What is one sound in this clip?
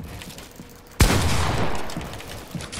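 A gunshot cracks and rings out.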